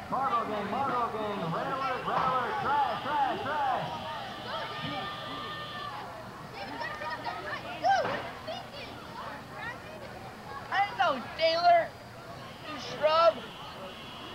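Young boys talk and call out to each other nearby.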